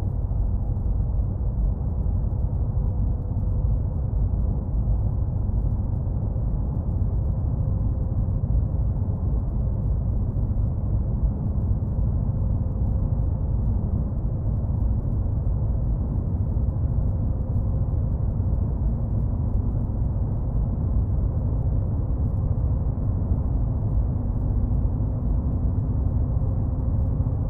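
Tyres roll on a road with a low rumble.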